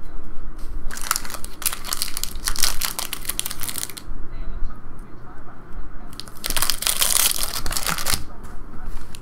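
A foil wrapper crinkles loudly as it is handled.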